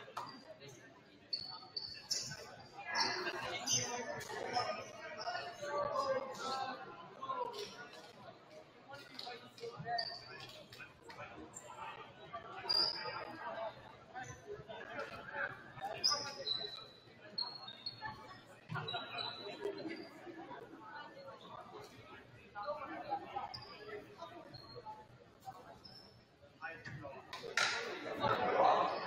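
Sneakers squeak sharply on a hard court, echoing in a large hall.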